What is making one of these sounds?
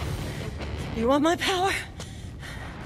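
A woman cries out with strain.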